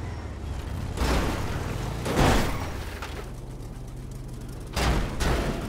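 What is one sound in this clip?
Heavy metal objects crash and clatter as they are hit.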